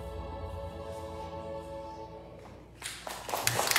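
A band's final chord rings out and fades.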